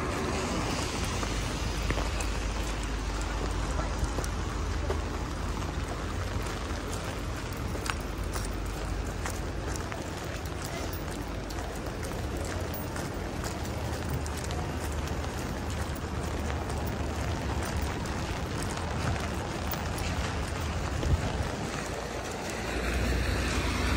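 Rain patters on wet pavement.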